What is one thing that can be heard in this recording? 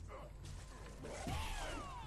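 Punches and kicks thud in a video game fight.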